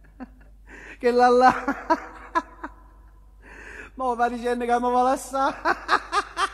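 A man sings into a microphone with a long held note.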